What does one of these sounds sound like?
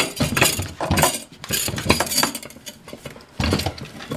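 A fire extinguisher clanks against its metal bracket.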